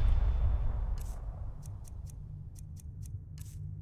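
Soft menu clicks tick quickly.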